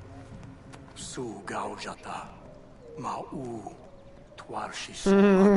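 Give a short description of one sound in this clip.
A man speaks close by, tense and pleading.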